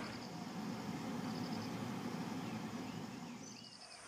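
A car's engine hums and its tyres roll on the road, heard from inside.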